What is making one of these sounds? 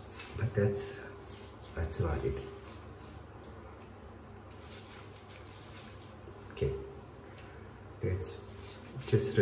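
A man speaks in short bursts close by.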